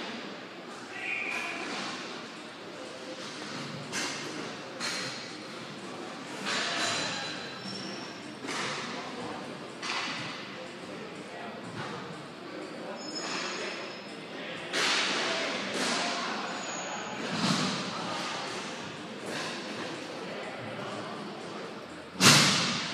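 Wheels roll and scrape on a hard rink floor.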